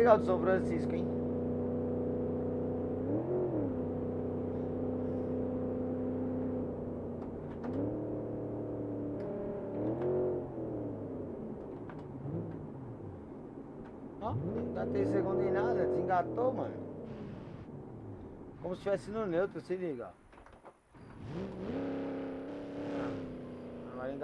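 A car engine hums steadily and revs up and down as gears change.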